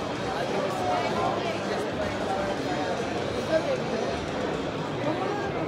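A crowd of people chatters in a large hall.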